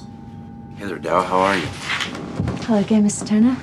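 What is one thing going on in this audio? A woman speaks warmly.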